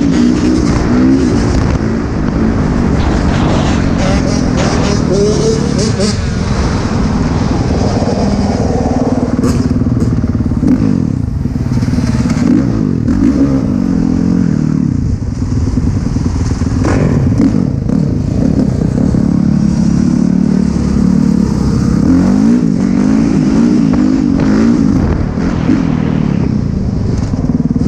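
A dirt bike engine revs and buzzes loudly up close.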